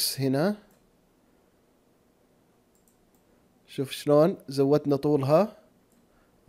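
A man talks calmly and close into a microphone.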